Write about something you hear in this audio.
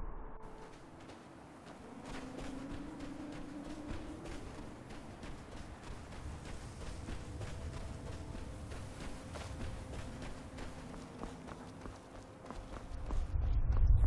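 Footsteps crunch on dirt as a character walks.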